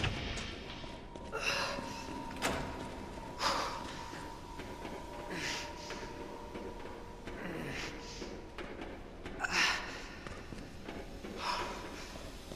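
Boots tread on a metal walkway.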